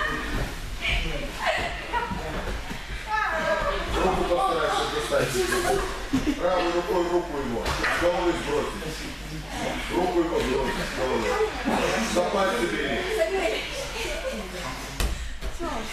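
Bodies thump and scuff on soft gym mats.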